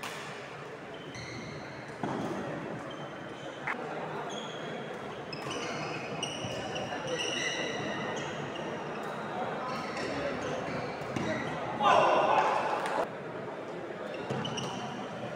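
Shoes squeak sharply on a wooden court.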